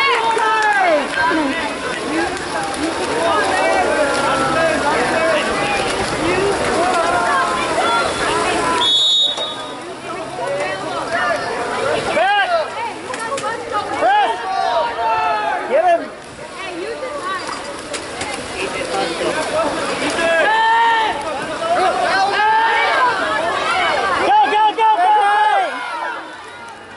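Men and women shout and cheer loudly close by, outdoors.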